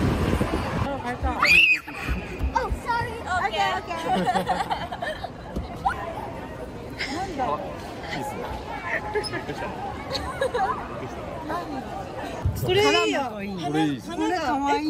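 Women and children chatter and call out nearby in a busy echoing hall.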